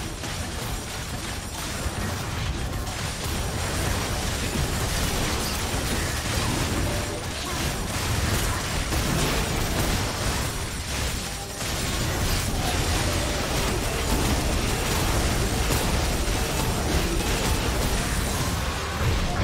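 Video game spells blast and crackle.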